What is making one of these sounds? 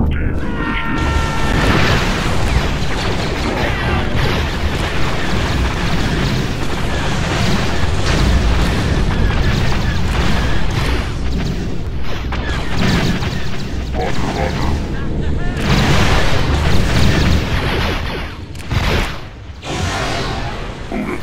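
Rapid gunfire crackles without a break.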